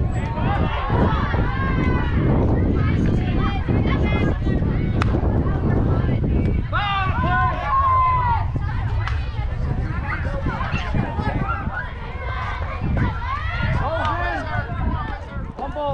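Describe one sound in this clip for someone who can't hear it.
Men and women talk and cheer close by.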